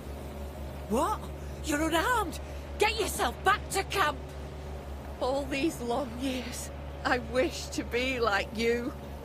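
A young woman speaks quietly and calmly.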